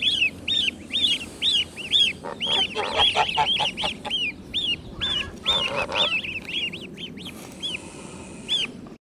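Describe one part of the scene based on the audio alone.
Several goslings peep in high, rising and falling calls.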